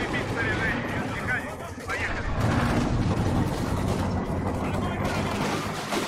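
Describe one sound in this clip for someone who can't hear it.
Shells explode with heavy booms.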